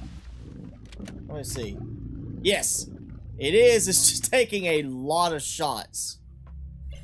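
A man talks with animation, close up.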